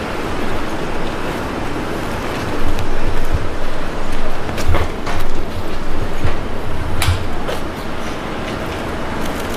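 Traffic noise rumbles steadily outdoors.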